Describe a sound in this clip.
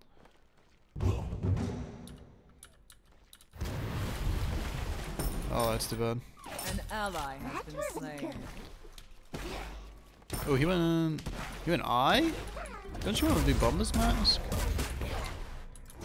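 Game sound effects whoosh and crackle during a fight.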